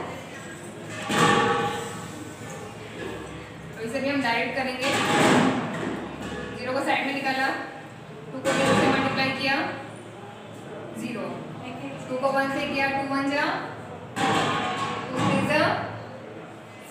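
A woman explains calmly and clearly, close by.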